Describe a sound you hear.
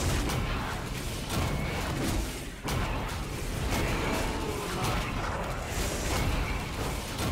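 Magic blasts and weapon hits crackle and thud in a fast fight.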